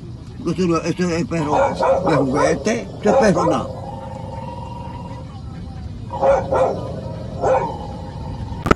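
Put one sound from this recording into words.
An elderly man talks with animation close by.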